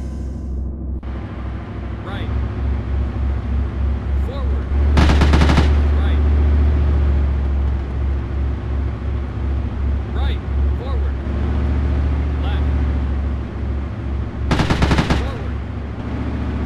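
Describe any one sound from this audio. A heavy tank engine rumbles and throbs steadily.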